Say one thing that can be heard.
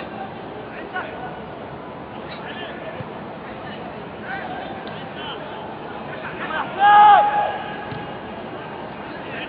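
Men shout to each other across a large open stadium.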